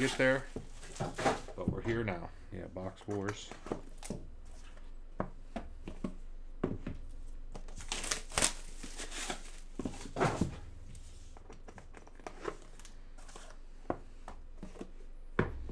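Cardboard boxes scrape and tap as hands handle them.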